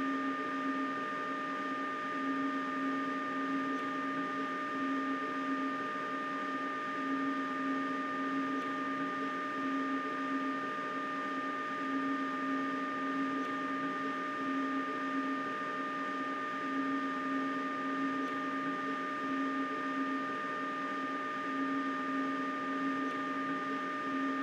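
Train wheels rumble over the rails.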